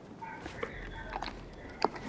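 Footsteps thud on hollow wooden steps.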